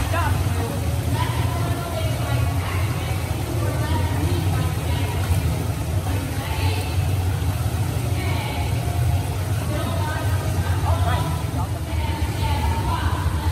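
A young woman talks encouragingly nearby, in an echoing hall.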